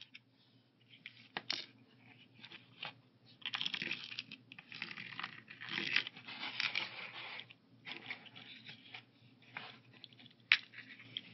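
Pills rattle inside a plastic pill box.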